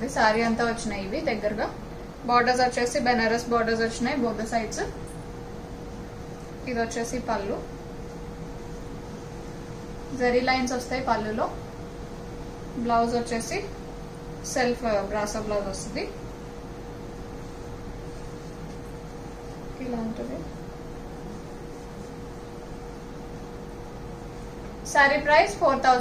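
A woman speaks calmly close by, in short bursts with pauses.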